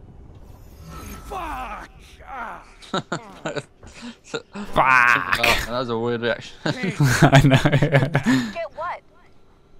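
A man shouts out in pain.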